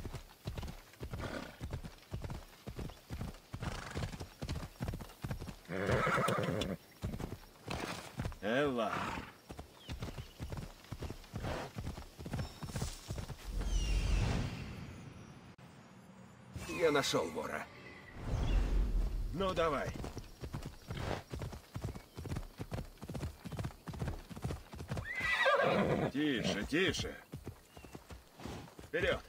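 A horse's hooves thud rapidly on a dirt path.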